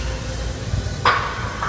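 Weight plates on a barbell clank.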